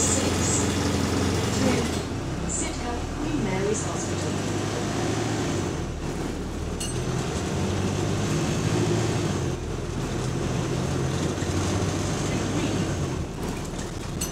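A bus engine hums and rumbles steadily while the bus drives.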